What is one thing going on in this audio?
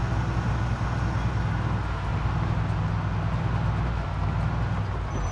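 A van engine hums steadily as it drives.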